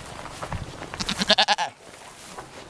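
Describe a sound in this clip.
A goat bleats loudly nearby.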